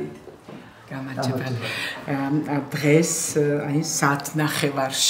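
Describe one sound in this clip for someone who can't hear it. An elderly woman speaks calmly and warmly nearby.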